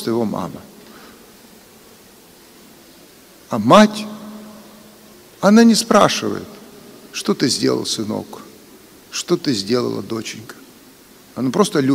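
An elderly man chants in a slow, sung voice through a microphone, echoing in a large hall.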